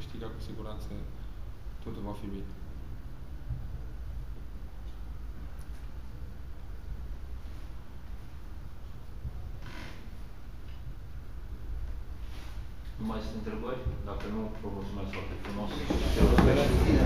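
A young man speaks calmly into microphones, close by.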